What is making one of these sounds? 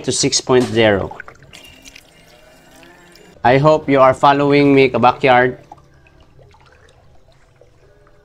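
Water splashes softly as a hand stirs it in a tub.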